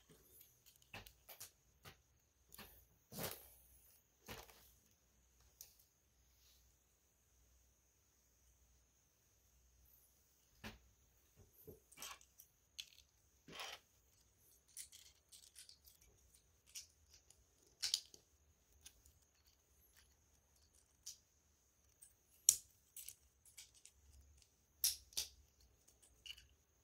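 Plastic toy bricks click and rattle as they are handled and snapped together.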